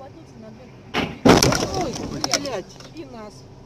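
A car crashes into another car with a loud bang.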